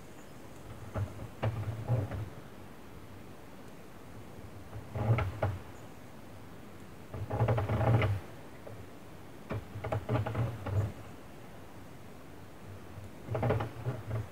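Plastic pegs of a knitting loom click and rattle in short bursts.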